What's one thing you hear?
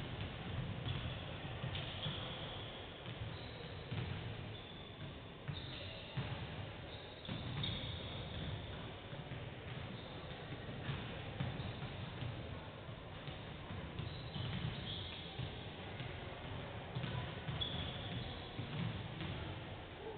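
Basketballs bounce on a wooden court, echoing in a large hall.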